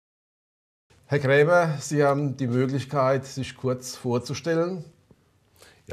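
An elderly man asks a question calmly into a microphone.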